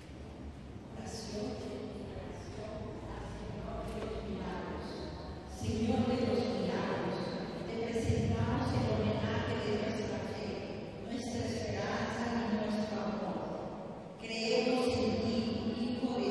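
A group of women sing together in a reverberant hall.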